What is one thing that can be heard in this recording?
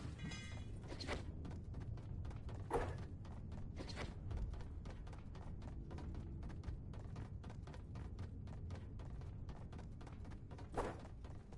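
Footsteps clatter quickly on metal stairs.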